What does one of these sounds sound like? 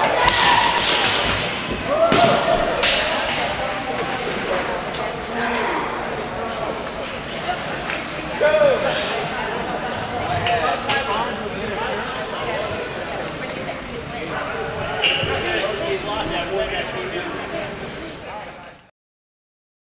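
Men shout and cheer in a large echoing rink.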